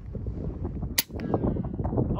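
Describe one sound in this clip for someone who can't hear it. A rifle fires a single sharp shot outdoors.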